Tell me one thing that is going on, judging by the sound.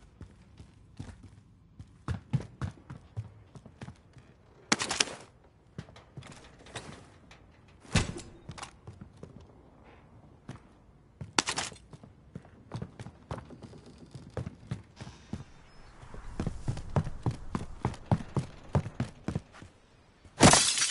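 Footsteps thud quickly on wooden floors and stairs.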